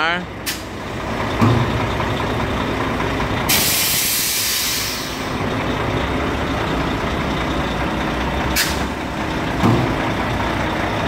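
A truck's diesel engine idles with a steady low rumble.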